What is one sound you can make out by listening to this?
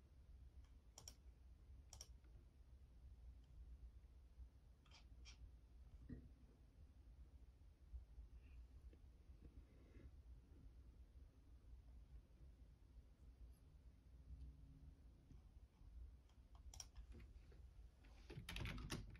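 Keys on a keyboard click now and then.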